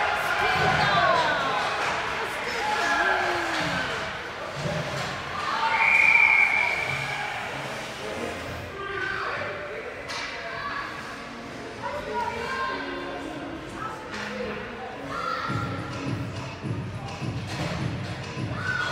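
Young players call out and shout across a large echoing rink.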